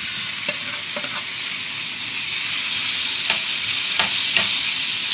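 A utensil clinks and scrapes against a pan.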